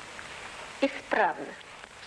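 A woman speaks briefly with animation.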